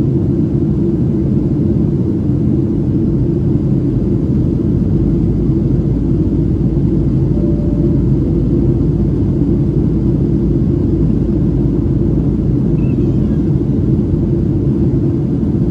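A jet airliner's engines roar steadily with a deep, constant rumble from inside the cabin.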